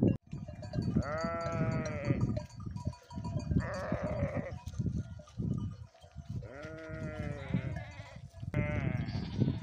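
A goat bleats loudly nearby, several times.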